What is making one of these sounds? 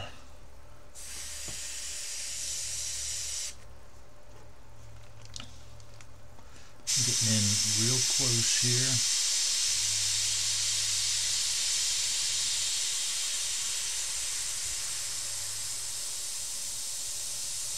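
An airbrush hisses steadily as it sprays paint.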